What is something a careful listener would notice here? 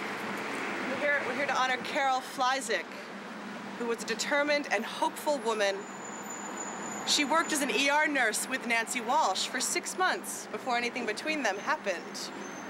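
A woman reads aloud with feeling to a crowd outdoors.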